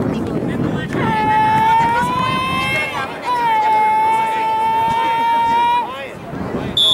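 A referee blows a long whistle.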